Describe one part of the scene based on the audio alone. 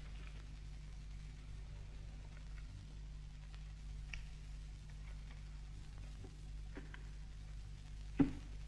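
Wicker creaks and rustles softly as a basket is woven by hand.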